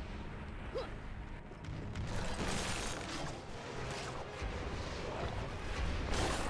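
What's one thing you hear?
A burst of fire whooshes.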